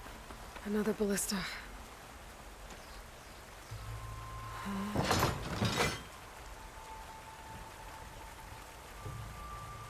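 A waterfall rushes steadily.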